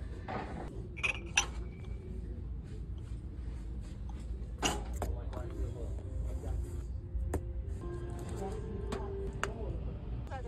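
Glassware clinks as it is picked up and set down.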